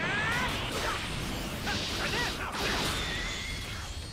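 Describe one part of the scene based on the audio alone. Punches land with heavy thuds in a video game.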